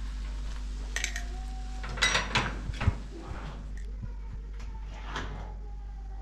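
A pot of water simmers on a gas stove.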